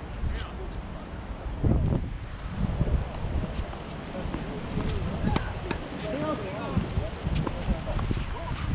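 Tennis rackets strike a ball back and forth with sharp pops.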